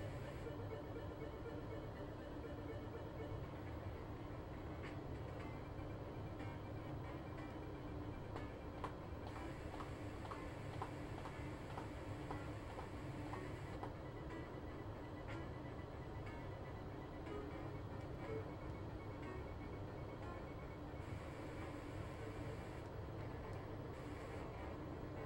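Chiptune video game music plays steadily.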